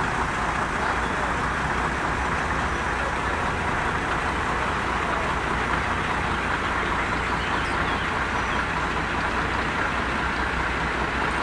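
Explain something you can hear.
A train engine rumbles steadily as the train rolls slowly along the tracks.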